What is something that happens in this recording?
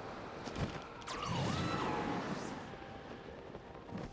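Wind rushes loudly past during a fast dive.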